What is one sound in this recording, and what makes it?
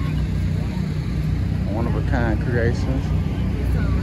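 Women chat nearby outdoors.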